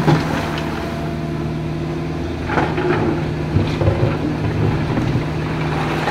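A river rushes nearby.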